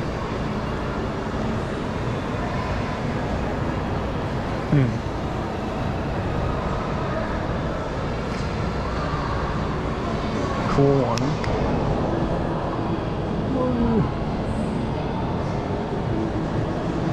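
A steady murmur of distant voices echoes through a large hall.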